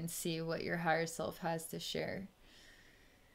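A woman speaks softly and calmly into a close microphone.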